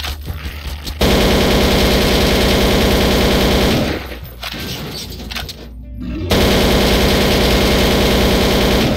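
A rifle fires rapid automatic bursts.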